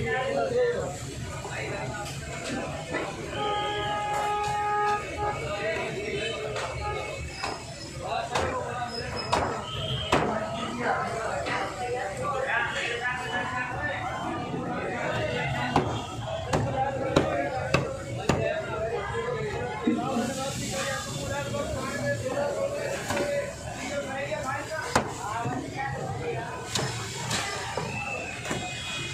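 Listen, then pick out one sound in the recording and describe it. A cleaver chops through fish on a wooden block with sharp thuds.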